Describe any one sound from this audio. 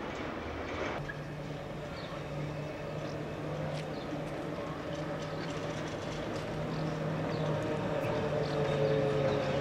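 A tram's motor hums steadily as it approaches.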